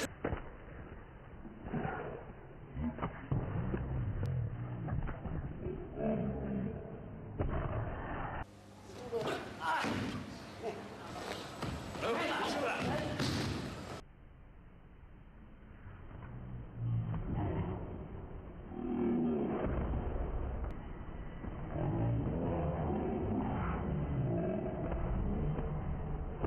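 Bodies thud onto a mat as people are thrown.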